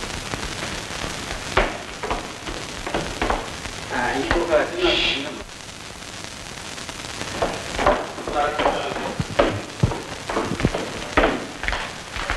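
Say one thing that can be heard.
Footsteps thud down a staircase.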